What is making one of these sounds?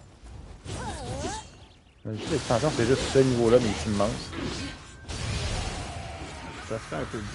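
Blades slash and clash in a fight.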